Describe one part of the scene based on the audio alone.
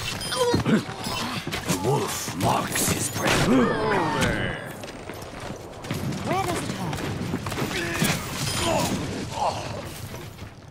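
Gunshots and weapon blasts go off in quick bursts.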